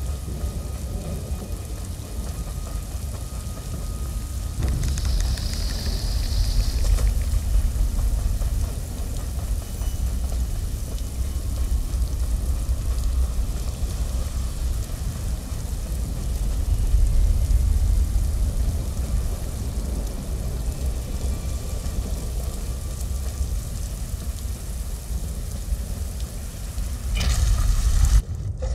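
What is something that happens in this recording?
Footsteps crunch on gravel and stone.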